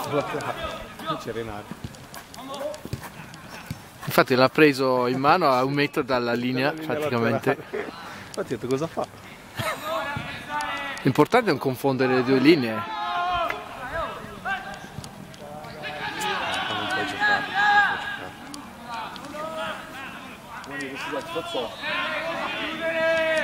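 Players call out to each other far off across an open field.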